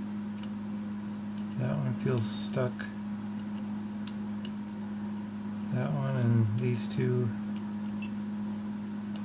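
A soldering tip scrapes and taps lightly on metal joints.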